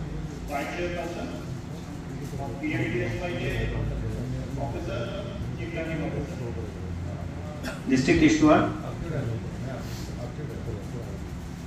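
A woman speaks calmly over an online call, heard through a loudspeaker.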